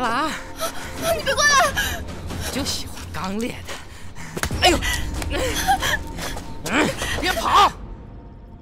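A young woman cries out in fright.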